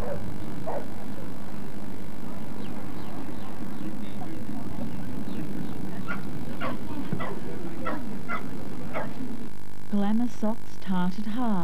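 A crowd chatters and murmurs in the background outdoors.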